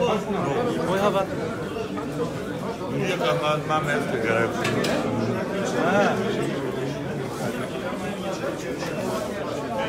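A crowd of men talk loudly and over one another close by.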